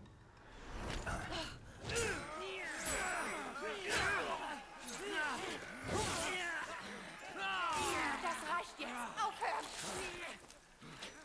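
Swords clash and ring with sharp metallic strikes.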